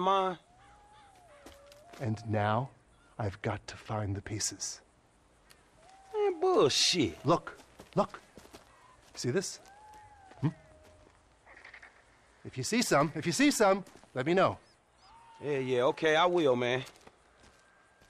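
A second man answers, close by.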